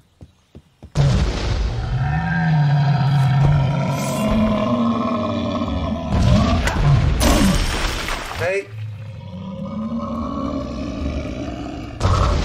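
A large beast roars and growls loudly.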